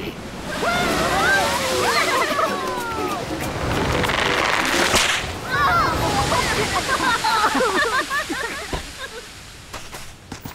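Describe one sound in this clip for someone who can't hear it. Waves crash and roar.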